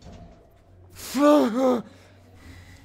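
A young man shouts loudly.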